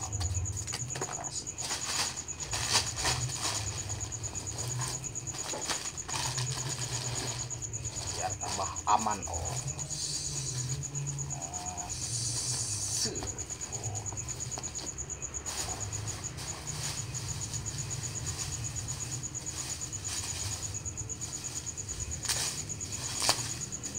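Plastic bubble wrap crinkles and rustles as hands handle it.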